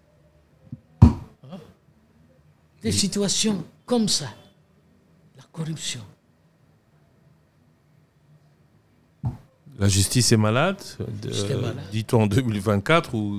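An elderly man speaks with animation into a close microphone, in bursts with pauses.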